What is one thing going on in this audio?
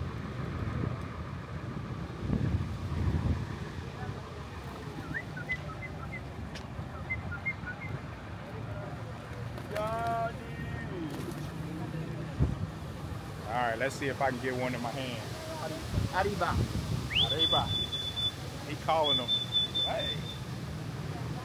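Pigeons coo and flutter their wings nearby.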